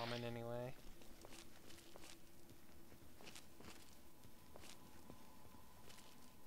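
Footsteps crunch on gravel and debris at a steady walking pace.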